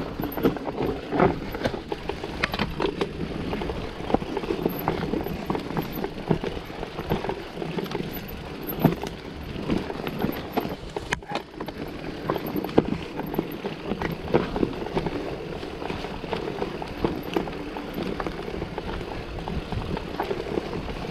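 A bicycle frame rattles and clanks over bumps.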